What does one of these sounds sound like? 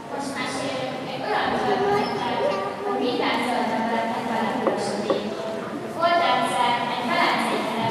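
A girl sings into a microphone in a large echoing hall.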